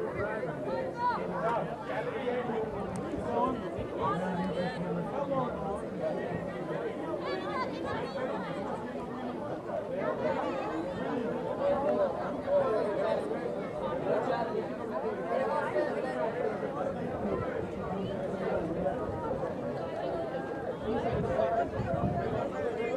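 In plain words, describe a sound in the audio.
A crowd of young women talk and call out outdoors.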